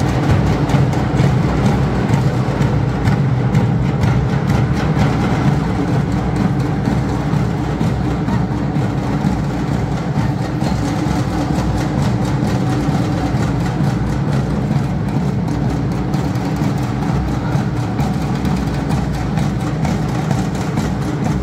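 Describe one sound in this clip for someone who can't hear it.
Drums beat in a steady rhythm, echoing through a large hall.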